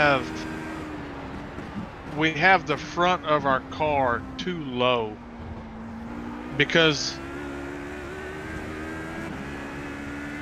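A racing car engine drones steadily, its pitch shifting with the gears.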